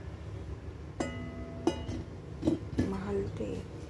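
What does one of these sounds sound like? A heavy metal lid clanks against a pot and rings briefly.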